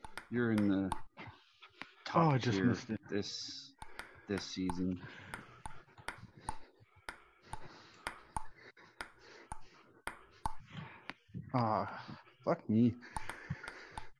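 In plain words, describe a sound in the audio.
A table tennis ball clicks against a paddle and the table, again and again.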